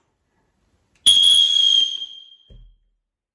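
A whistle gives one long loud shrill blast.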